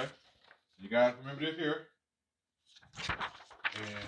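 A sheet of paper crinkles as it is peeled away.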